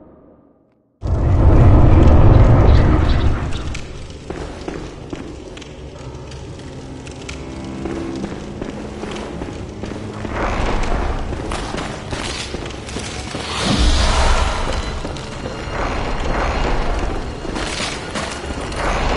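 Footsteps tread on a stone floor.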